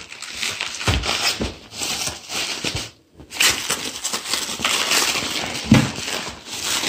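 A cardboard box scrapes and thumps.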